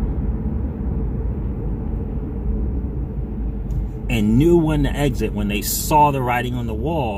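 A car rumbles steadily along a road.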